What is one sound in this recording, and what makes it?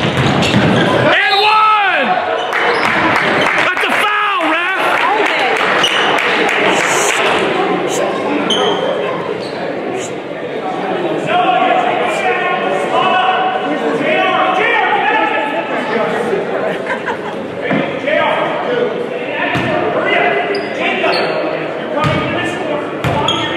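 A crowd cheers and chatters in an echoing gym.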